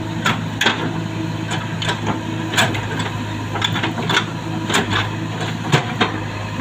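A diesel engine rumbles steadily nearby.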